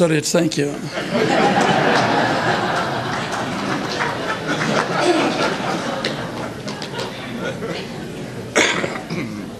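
An audience laughs together.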